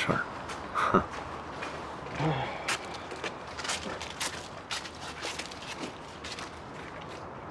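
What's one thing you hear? Many footsteps crunch on gravel as a group walks.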